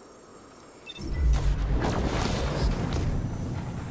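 A fiery blast roars and rumbles.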